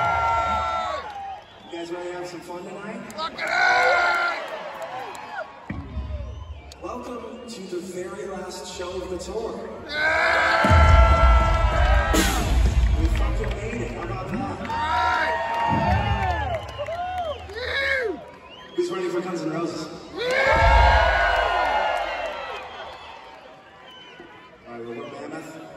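A band plays rock music with heavy drums and bass.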